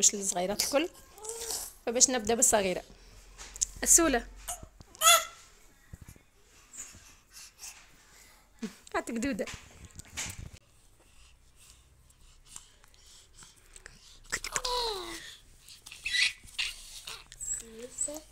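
A baby girl babbles and squeals close by.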